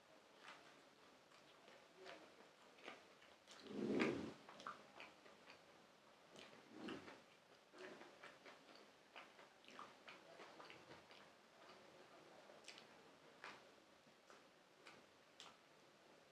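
A man chews and crunches food close to a microphone.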